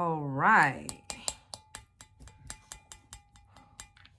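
A spoon clinks repeatedly against a glass cup.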